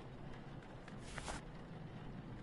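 Paper rustles briefly as a sheet is lifted.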